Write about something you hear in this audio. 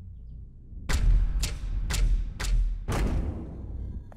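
A fist knocks several times on a door.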